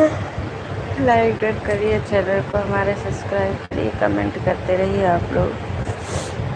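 A middle-aged woman speaks tearfully, close by.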